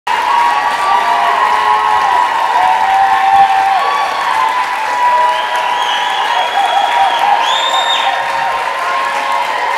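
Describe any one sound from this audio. An orchestra plays sustained notes in a large hall.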